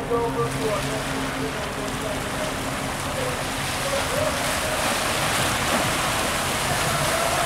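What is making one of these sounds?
Water washes and laps steadily.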